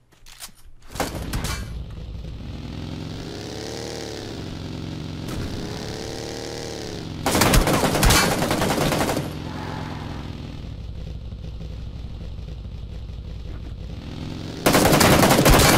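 A buggy engine roars and revs up and down as it drives over rough ground.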